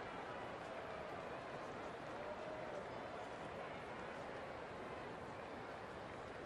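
A large crowd murmurs in the distance.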